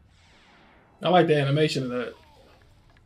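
A young man speaks up loudly and with animation, close to a microphone.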